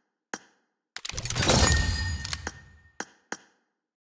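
A game menu plays a whooshing reward fanfare.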